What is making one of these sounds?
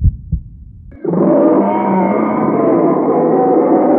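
A bear roars loudly.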